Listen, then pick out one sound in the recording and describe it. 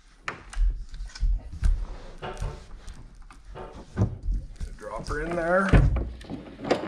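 Plastic and cables clatter and knock as they are handled up close.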